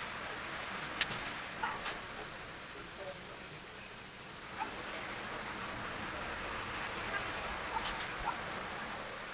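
Faint taps and clicks sound now and then close by.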